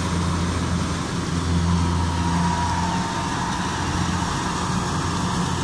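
A combine harvester's engine drones steadily nearby.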